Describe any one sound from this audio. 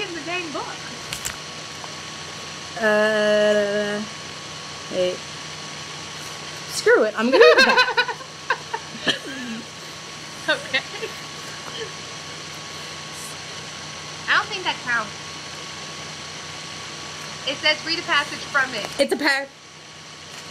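A young woman talks and laughs over an online call.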